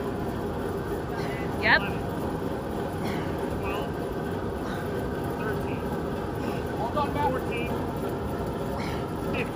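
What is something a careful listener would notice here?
A large fan blows with a steady roar.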